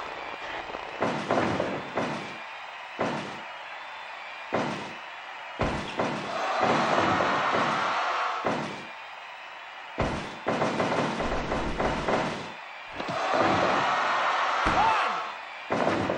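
Heavy thuds and slams land on a wrestling ring mat.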